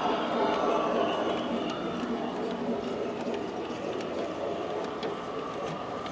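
A model train rattles and clicks along its track.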